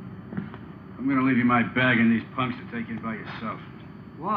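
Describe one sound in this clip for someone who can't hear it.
A middle-aged man answers calmly nearby.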